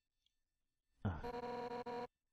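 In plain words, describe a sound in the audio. Short electronic beeps sound in quick succession.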